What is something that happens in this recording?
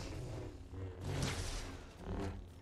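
A sharp burst of energy crackles and booms.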